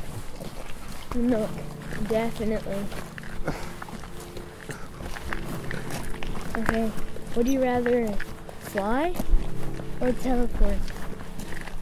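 A boy talks cheerfully nearby.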